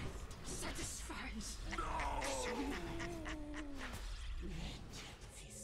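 Clashing blows and magic spells crackle in a fierce fight.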